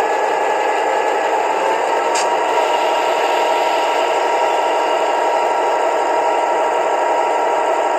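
A small speaker plays a steady, rumbling diesel engine idle.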